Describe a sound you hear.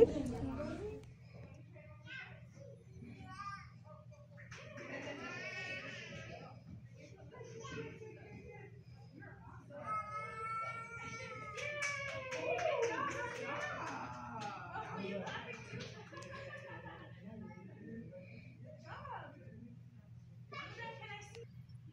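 A woman speaks gently to a toddler.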